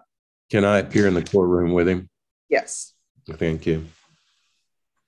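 An elderly man speaks over an online call.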